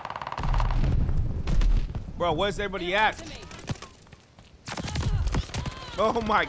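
Gunfire and explosions rumble from a video game.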